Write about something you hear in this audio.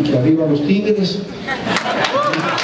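An elderly man speaks into a microphone through loudspeakers.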